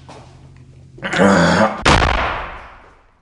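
A door latch clunks as a door is pushed open.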